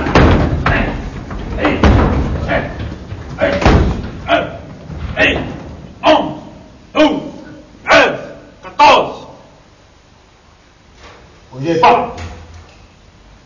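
A man shouts commands sharply.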